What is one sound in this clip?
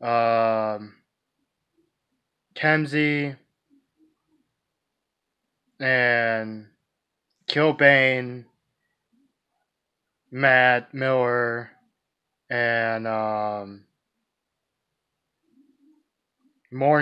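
A young man speaks close to a microphone in short, separate phrases with pauses between them.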